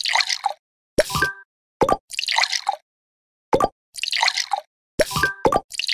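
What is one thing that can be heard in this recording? A short chime rings as a tube is sealed with a cork.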